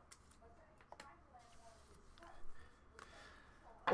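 Plastic card cases click and rustle in hands.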